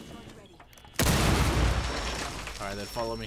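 A loud blast bursts close by and rumbles.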